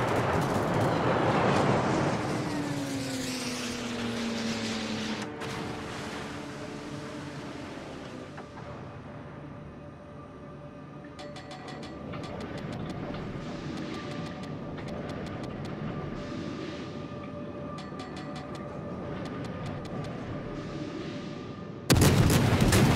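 Anti-aircraft guns pop and crackle rapidly.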